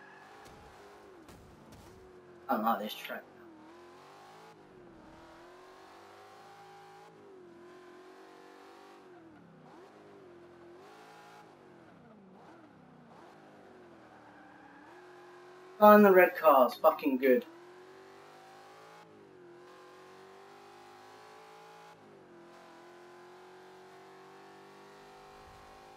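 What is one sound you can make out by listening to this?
A race car engine revs up and down steadily.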